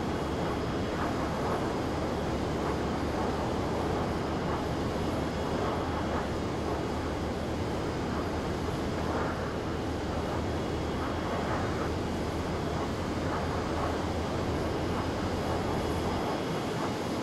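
A jet engine roars steadily at idle close by.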